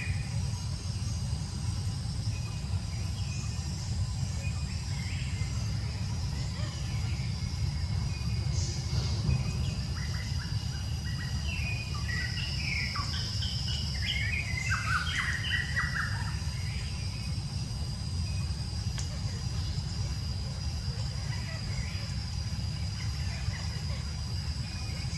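Wind blows steadily outdoors through trees.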